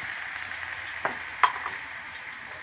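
A metal spatula scrapes and knocks against a pan.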